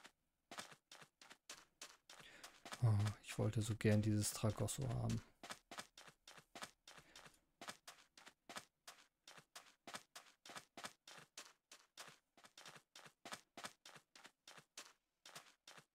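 Footsteps crunch on sand in a quick, steady rhythm.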